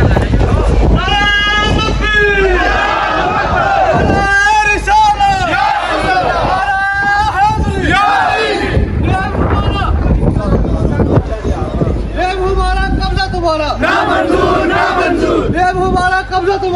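A crowd of young men chants slogans loudly in unison outdoors.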